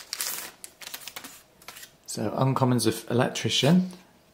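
Playing cards rustle and slide against each other as hands handle them.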